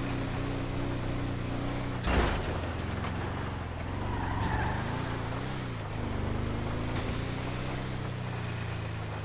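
An engine hums steadily as a truck drives along.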